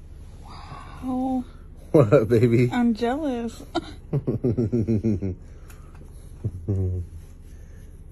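A man talks softly and affectionately up close.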